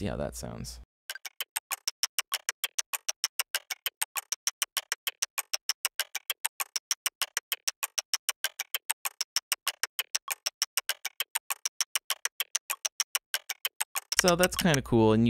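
A sharp electronic percussion click repeats rapidly in an even rhythm.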